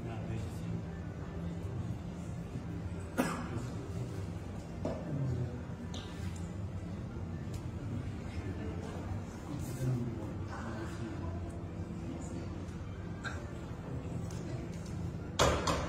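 Men murmur to each other in a group.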